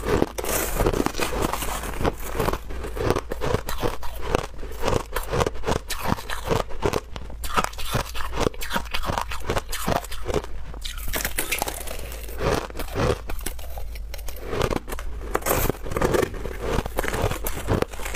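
A metal spoon scrapes through shaved ice.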